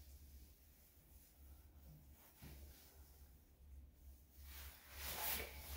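Fabric rustles as a cover is pulled over a dog's head.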